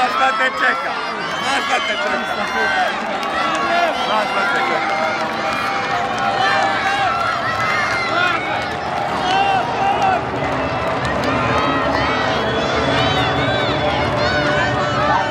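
A large crowd chatters and cheers in a big open stadium.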